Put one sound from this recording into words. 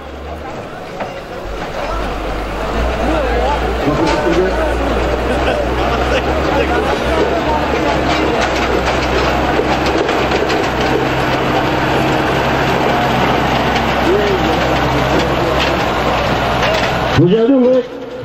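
A large crowd of men shouts and clamours outdoors.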